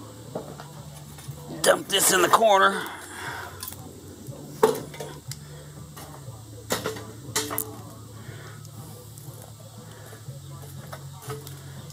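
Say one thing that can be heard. Metal tongs clink and knock against lumps of charcoal.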